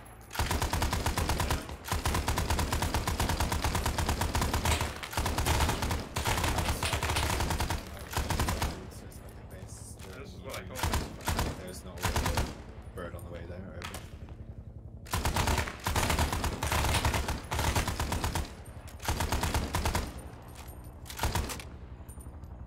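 A heavy machine gun fires rapid bursts, close and loud.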